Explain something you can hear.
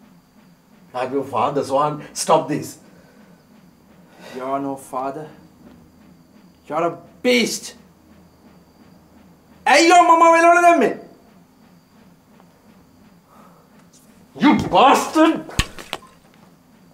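A middle-aged man speaks in a low, tense voice, close by, in short bursts.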